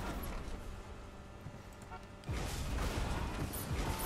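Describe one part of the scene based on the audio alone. A game buggy lands with a thud.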